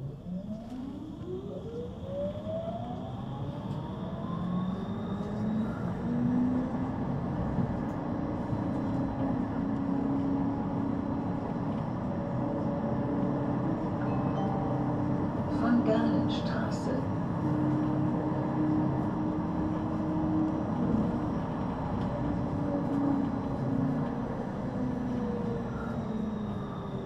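A tram stands humming steadily with its electric motors whirring.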